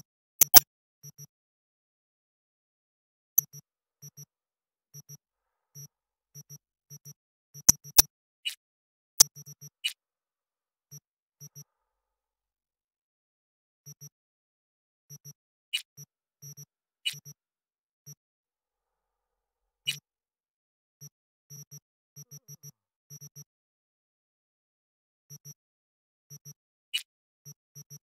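Short soft electronic blips tick again and again.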